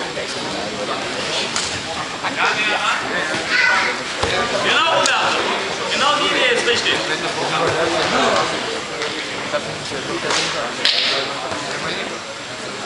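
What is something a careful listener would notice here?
Several adults talk and call out in a large echoing hall.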